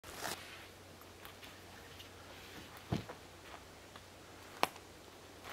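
Footsteps crunch on dry forest soil.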